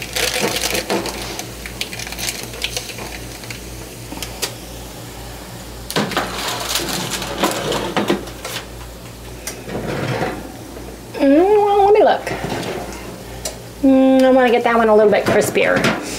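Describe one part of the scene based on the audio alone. A metal baking tray scrapes and clatters against an oven rack.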